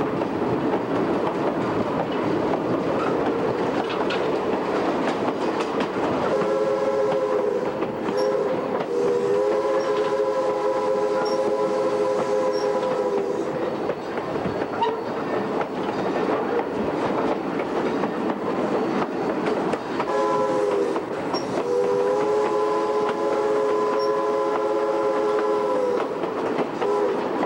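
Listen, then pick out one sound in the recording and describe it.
A diesel locomotive engine rumbles steadily close by.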